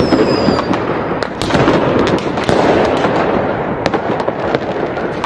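Fireworks crackle and pop in quick bursts.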